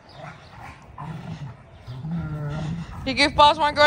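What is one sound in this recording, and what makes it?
German shepherds growl as they play-fight.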